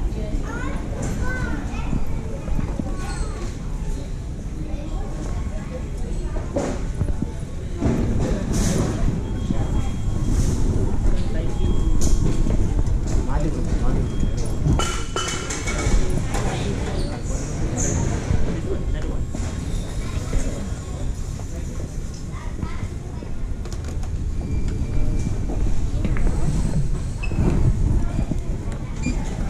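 Many people murmur and talk in a large echoing hall.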